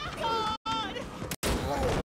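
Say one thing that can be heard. A woman cries out in fear.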